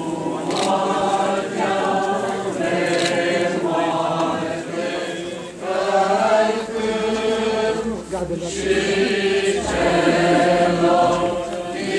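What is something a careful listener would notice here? A crowd of men and women sings a slow hymn together.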